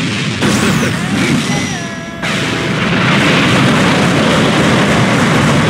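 A swirling energy blast roars loudly and steadily.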